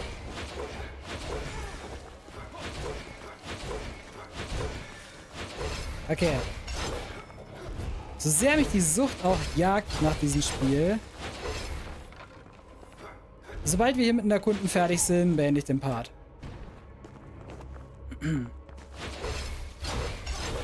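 Sword slashes and hits clash in quick bursts.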